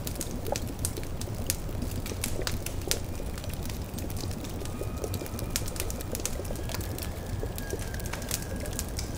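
A brew bubbles in a pot.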